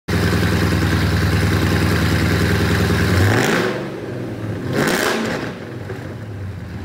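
A powerful car engine rumbles loudly at idle.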